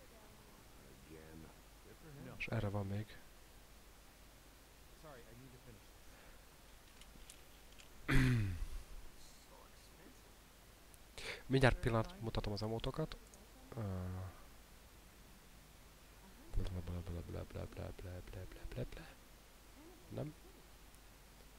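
A man talks casually into a close microphone, in bursts with pauses.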